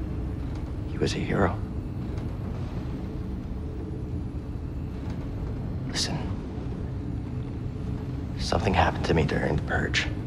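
A young man speaks softly up close.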